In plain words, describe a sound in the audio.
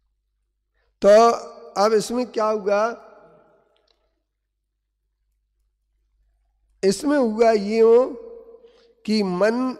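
An elderly man speaks with animation into a microphone, in bursts with pauses.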